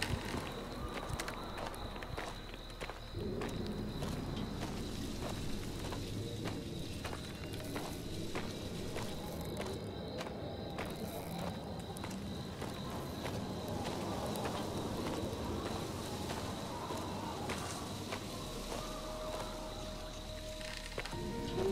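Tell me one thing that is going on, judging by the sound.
Footsteps rustle through grass and leaves at a steady walking pace.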